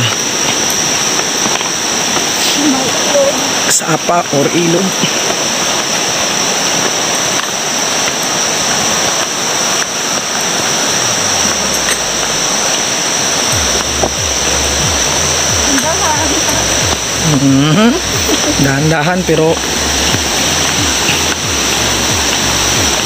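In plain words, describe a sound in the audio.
A mountain stream rushes over rocks nearby.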